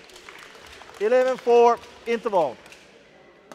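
A man shouts loudly in an echoing hall.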